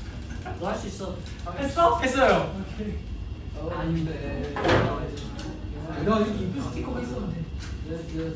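Several young men laugh and chatter in the background.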